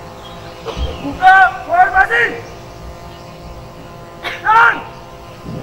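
A young man shouts loud commands outdoors.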